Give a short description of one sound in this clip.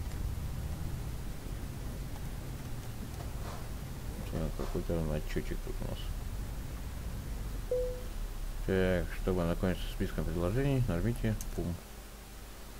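A truck engine rumbles low and steadily.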